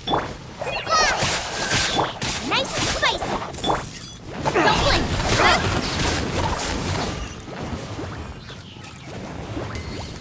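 Magic blasts and sword strikes crash and whoosh in quick bursts.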